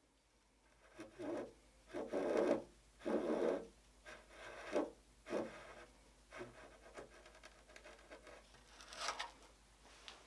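Metal pieces clink and scrape against each other as they are fitted together.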